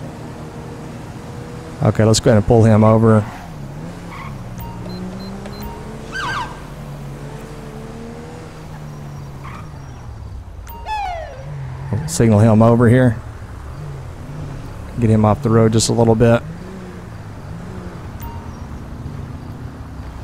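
A car engine hums steadily while driving.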